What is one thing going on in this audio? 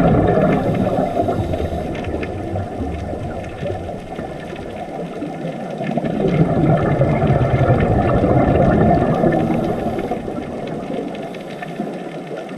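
Scuba bubbles rumble and gurgle underwater, heard from close by.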